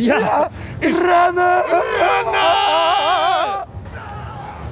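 A man sings loudly and close by, with a wavering voice.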